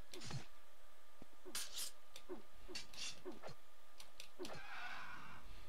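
Weapons swish through the air and strike again and again in a fight.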